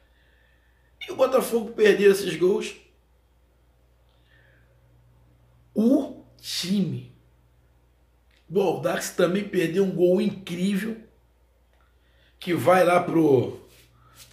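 A middle-aged man speaks close by in short bursts, with pauses between.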